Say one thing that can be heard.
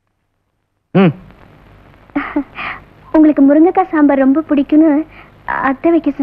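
A woman sings with a wavering, melodic voice.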